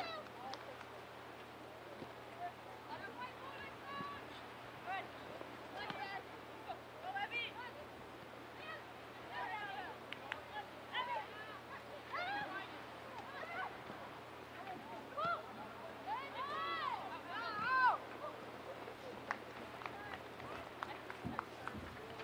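Young women shout and call out across an open field.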